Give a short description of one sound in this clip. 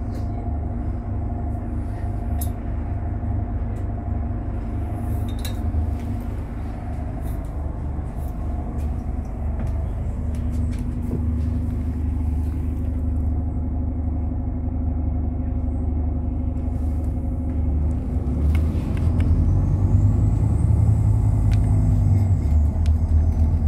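A diesel double-decker bus engine drones from the upper deck.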